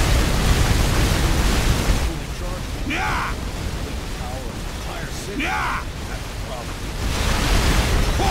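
Gunfire blasts rapidly.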